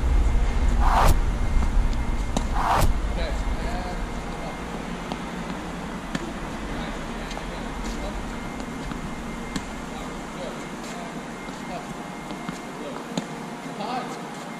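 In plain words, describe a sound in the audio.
A tennis racket strikes a ball with a sharp pop, again and again.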